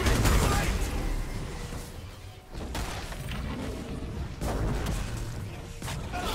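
Spell effects crackle and whoosh in a fast game battle.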